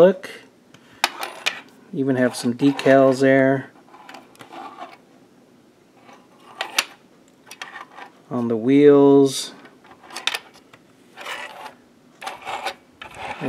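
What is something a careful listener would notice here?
Plastic toy parts click and rattle as they are handled.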